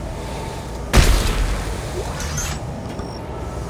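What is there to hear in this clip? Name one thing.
Thrusters fire in a loud rushing burst.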